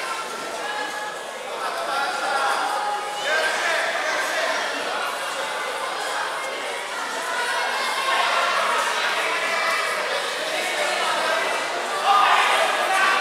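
A crowd of people talks and calls out in a large echoing hall.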